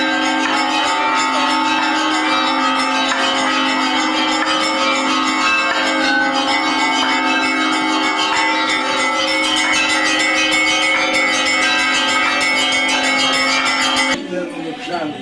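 A crowd sings together in a large echoing hall.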